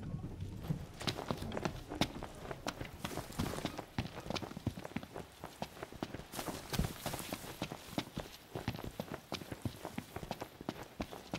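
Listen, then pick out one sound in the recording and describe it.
Footsteps run quickly over grass and dirt.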